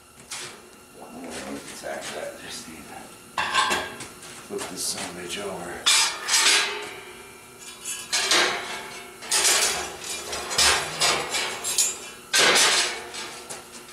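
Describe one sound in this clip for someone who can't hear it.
Metal parts clank and knock against a steel table.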